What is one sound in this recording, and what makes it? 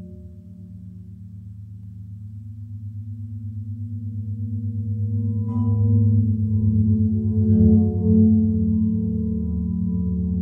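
A spinning turntable hums with a low, fast pulsing throb that grows louder.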